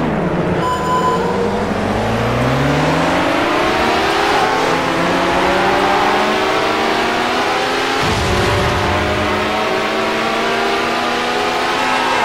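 A racing car engine revs and roars, rising steadily in pitch as it speeds up.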